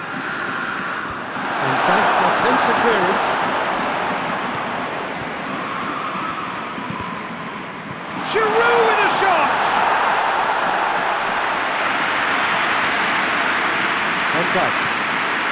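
A stadium crowd roars steadily, swelling at times.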